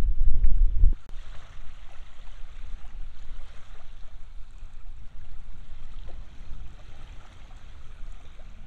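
Small waves lap gently at the shore.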